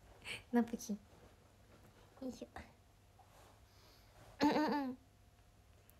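A young woman speaks cheerfully and close up, in short bursts.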